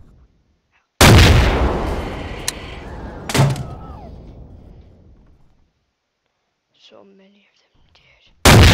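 A rocket launcher fires with a loud whoosh.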